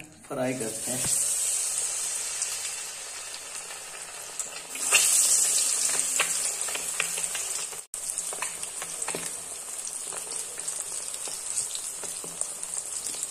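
Oil sizzles and crackles steadily as food fries.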